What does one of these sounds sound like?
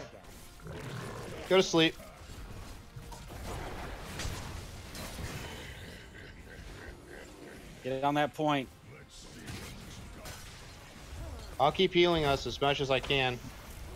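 Spell effects crackle and whoosh during a fight in a video game.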